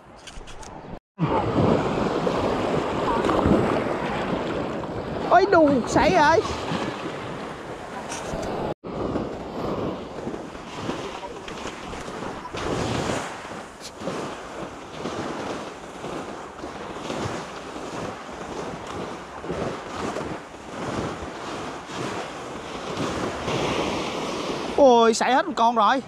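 Waves wash onto a beach.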